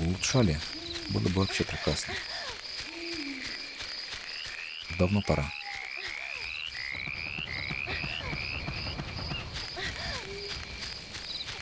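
Footsteps pad softly across grass.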